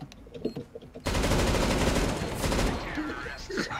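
A machine gun fires a rapid burst.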